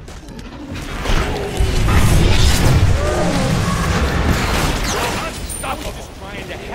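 Magic blasts and weapon strikes crash loudly in a fight.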